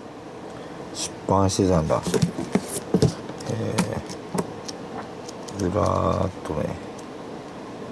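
Magazine pages rustle and flap as they are turned.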